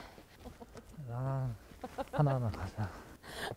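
A young man speaks in a low voice close by.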